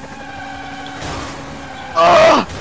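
Tyres screech as a car drifts through a bend.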